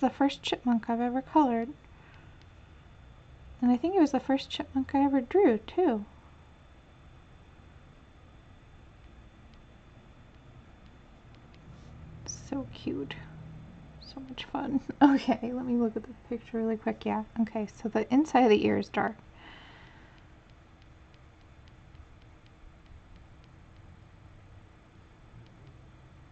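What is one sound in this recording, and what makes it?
A coloured pencil scratches softly on paper.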